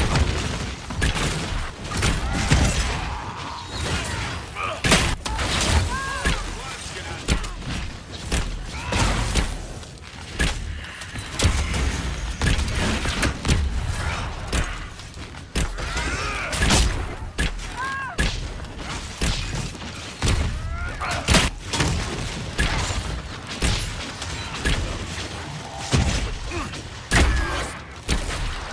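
Weapons clash and strike in a fierce battle.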